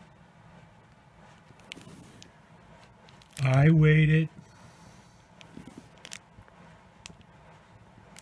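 A plastic wrapper crinkles as it is handled.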